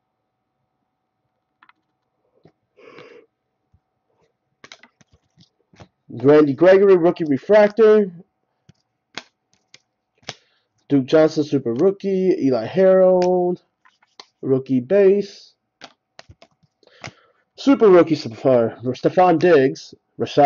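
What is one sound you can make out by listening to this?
Glossy trading cards slide and rustle against each other in hands.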